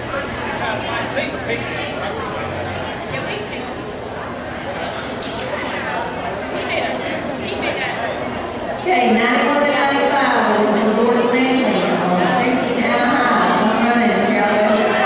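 A crowd murmurs and chatters under a large echoing roof.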